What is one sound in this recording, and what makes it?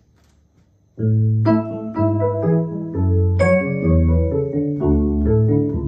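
An electric piano plays chords loudly and richly.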